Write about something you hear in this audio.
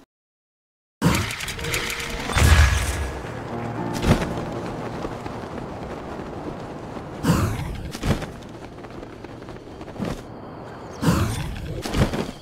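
Wind rushes past steadily during a glide through the air.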